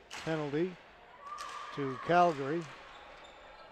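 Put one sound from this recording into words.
Players shout to each other in a large echoing arena.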